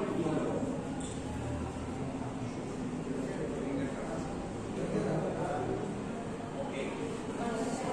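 A young man speaks calmly to a room, slightly distant and echoing.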